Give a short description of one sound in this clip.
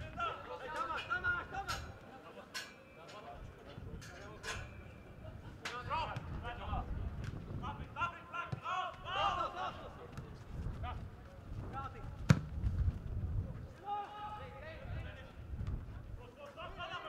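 Players shout to each other across an open football pitch.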